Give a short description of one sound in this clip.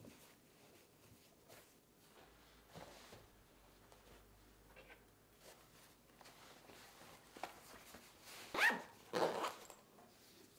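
Fabric and a plastic wrapper rustle as a lunch bag is packed.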